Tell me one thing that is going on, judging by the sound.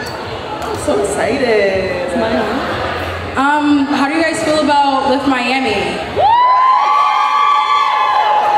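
A young woman talks with animation through a microphone over loudspeakers in a large room.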